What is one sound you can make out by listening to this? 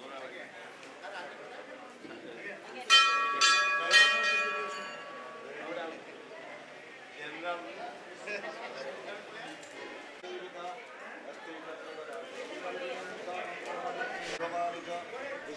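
A crowd of men murmur and chatter nearby.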